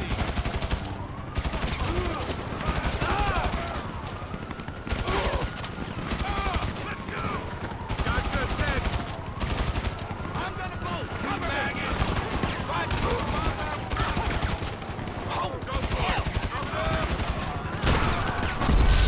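Rifle shots fire in rapid bursts nearby.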